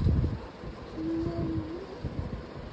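A toddler babbles softly nearby.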